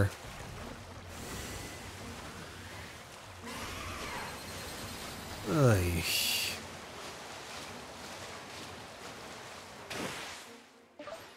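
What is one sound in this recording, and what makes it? Water splashes and rushes steadily.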